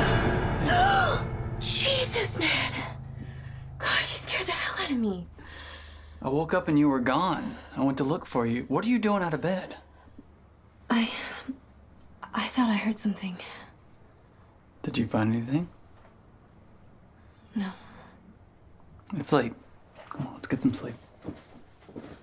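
A young woman speaks quietly, close by.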